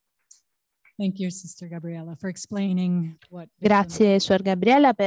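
A woman speaks loudly into a microphone in a large room.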